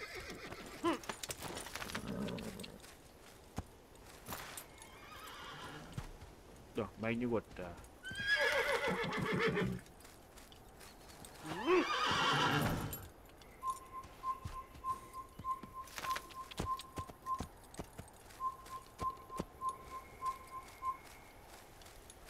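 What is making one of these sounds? A horse's hooves gallop over dry ground.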